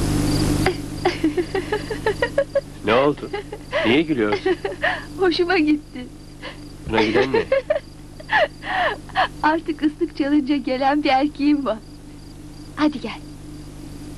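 A young woman talks and laughs cheerfully nearby.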